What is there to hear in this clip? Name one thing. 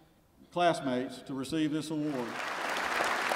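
A man speaks into a microphone over a loudspeaker in a large hall.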